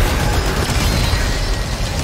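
Sparks fizz and crackle.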